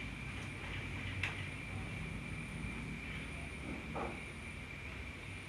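A hand softly strokes a baby monkey's fur with a faint rustle.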